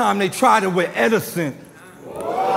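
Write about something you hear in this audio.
A young man raps loudly into a microphone.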